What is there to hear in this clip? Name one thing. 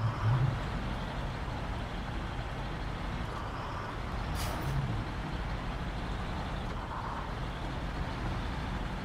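A truck engine rumbles steadily as the truck drives over rough ground.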